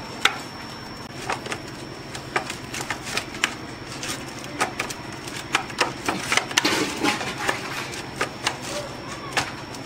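A spoon clinks and scrapes against a metal bowl.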